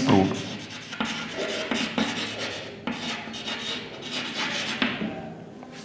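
Chalk taps and scrapes on a chalkboard.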